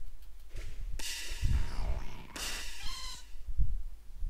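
A video game plays a bright whooshing sound effect as a battle begins.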